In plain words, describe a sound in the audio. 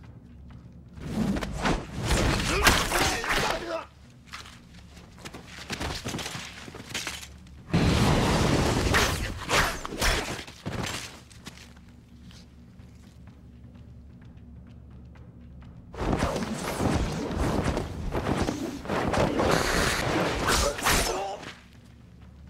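Swords swish and slash in quick strikes.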